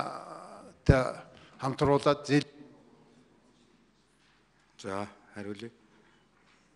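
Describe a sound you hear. A middle-aged man speaks calmly into a microphone in a large room.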